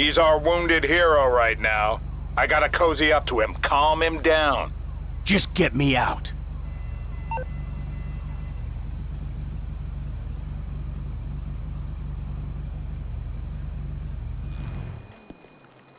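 A motorcycle engine idles with a low steady rumble, then cuts off.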